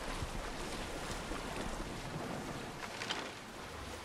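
Water splashes against a sailing boat's hull.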